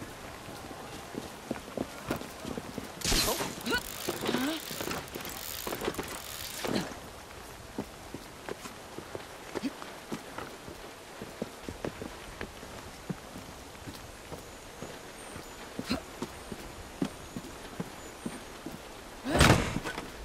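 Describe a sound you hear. Footsteps patter and scuff on stone and roof tiles.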